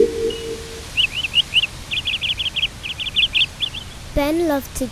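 A small bird chirps rapidly.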